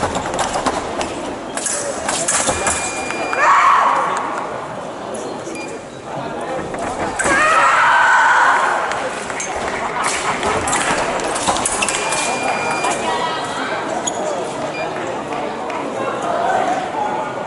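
Crowd chatter echoes through a large hall.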